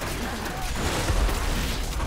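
Electric lightning bolts zap and crackle.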